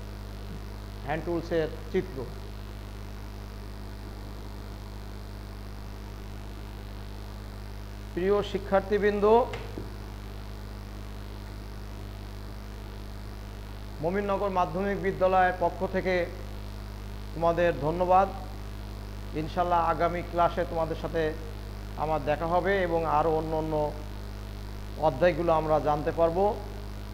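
A man speaks calmly in short phrases nearby, with pauses between them.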